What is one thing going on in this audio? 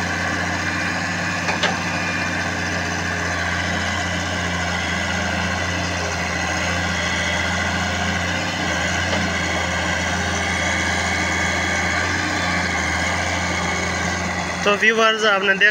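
An excavator's diesel engine drones steadily close by.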